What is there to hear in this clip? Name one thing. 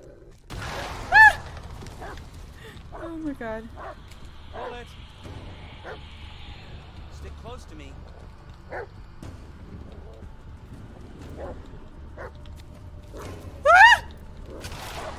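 A dog yelps with a high, short whine.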